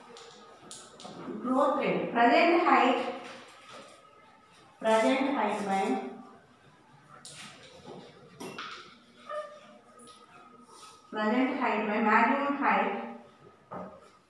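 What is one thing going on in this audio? A woman speaks loudly in short bursts.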